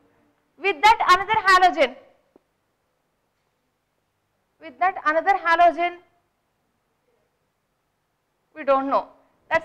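A woman speaks calmly and clearly, in short phrases with pauses.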